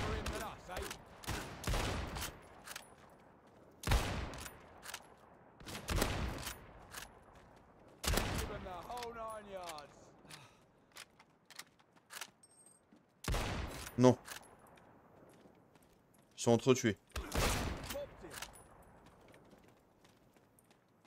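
A rifle bolt clicks and clatters as it is worked.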